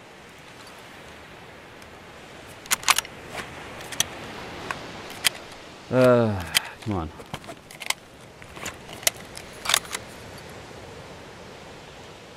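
A rifle's metal parts click and rattle as it is handled.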